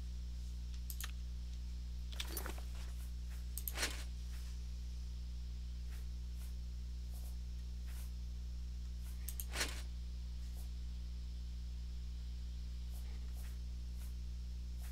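Short soft clicks sound as menu items are selected.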